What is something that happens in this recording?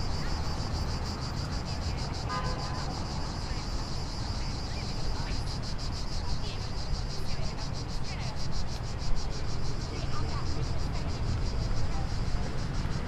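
Traffic hums steadily on a road nearby.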